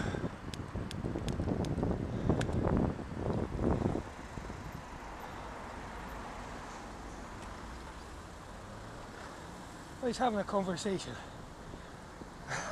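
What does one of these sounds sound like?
Car engines hum steadily in passing traffic nearby.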